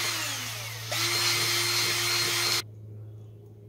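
A cordless drill whirs loudly as it bores into rubber.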